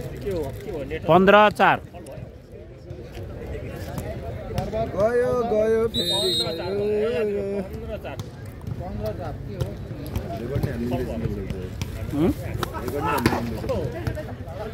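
Young men shout and call out nearby.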